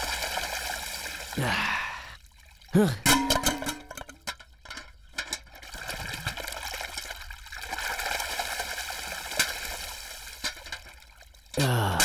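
Water splashes and pours.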